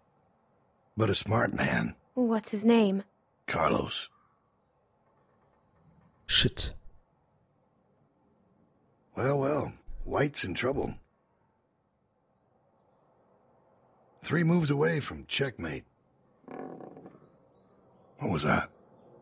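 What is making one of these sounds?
A girl asks questions.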